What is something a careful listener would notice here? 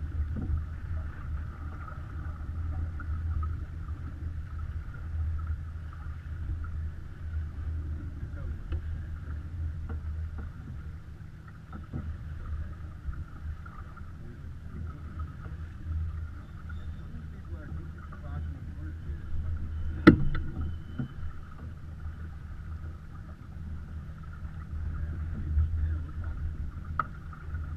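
Water splashes along a sailboat's hull.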